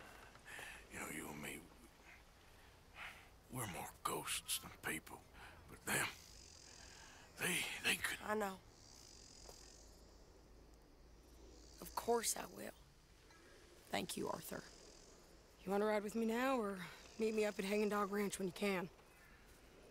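A man speaks in a low, gravelly voice, close by.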